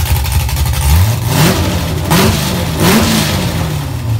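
A car engine revs sharply several times and drops back.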